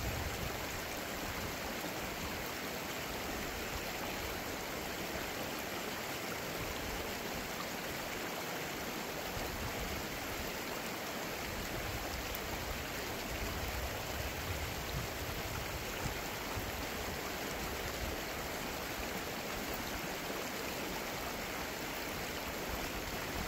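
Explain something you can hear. A shallow river ripples and babbles steadily over rocks.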